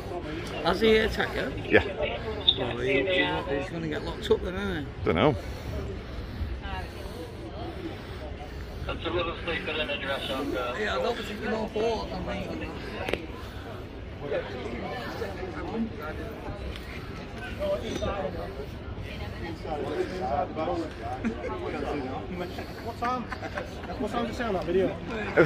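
Several men and women talk at once nearby, outdoors.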